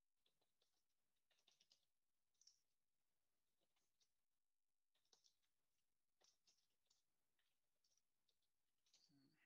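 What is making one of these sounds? Keys clack softly on a keyboard in quick bursts.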